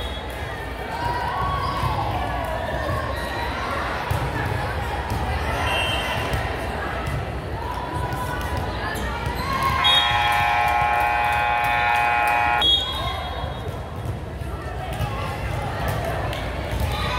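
Volleyballs thump off hands and the hard floor in a large echoing gym.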